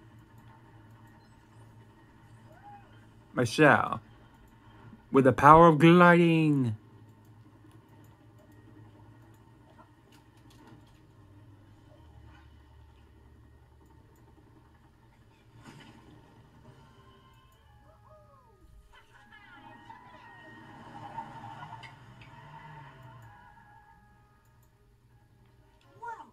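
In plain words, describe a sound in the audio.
Video game sound effects play through a television speaker.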